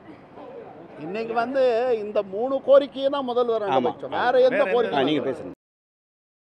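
A middle-aged man speaks loudly and with animation into microphones.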